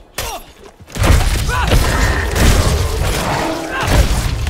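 Heavy blows and magical blasts crash and rumble in a fierce fight.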